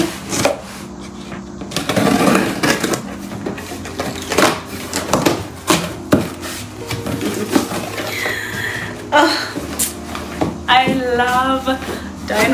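Cardboard rustles and tears as a box is opened.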